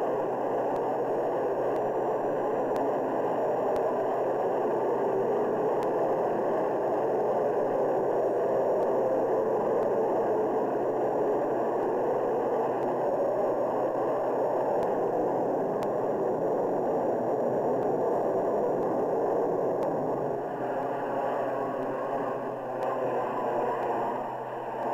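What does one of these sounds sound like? A jet engine roars loudly as a fighter plane takes off and climbs away.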